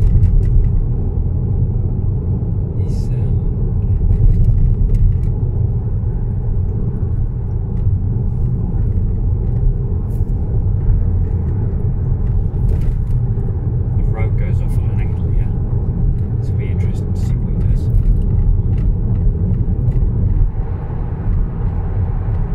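A car engine hums steadily with a low road rumble.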